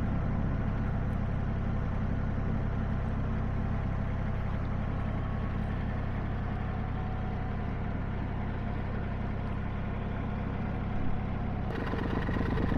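A boat engine chugs steadily.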